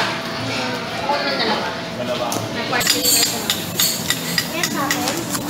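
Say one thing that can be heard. Food sizzles on a hot griddle.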